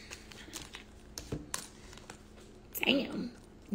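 Cards rustle and tap as they are handled.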